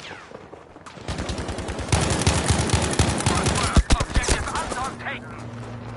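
A rifle fires rapid, loud shots that ring out.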